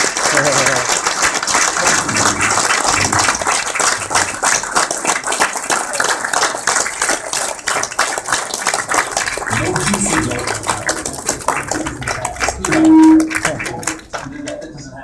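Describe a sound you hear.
A crowd applauds loudly in a large room.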